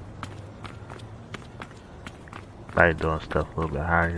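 Footsteps run across pavement.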